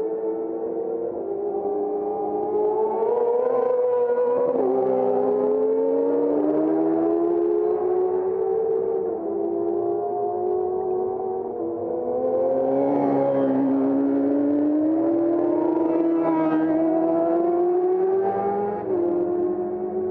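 Racing motorcycle engines roar and whine as bikes speed past, rising and falling in pitch as they change gear.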